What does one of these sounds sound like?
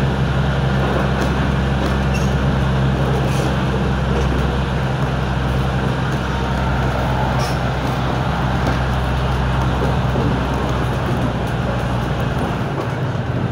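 Train wheels clack faintly over the rails.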